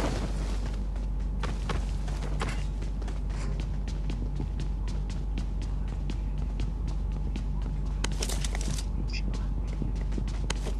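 Footsteps patter quickly on a hard roof.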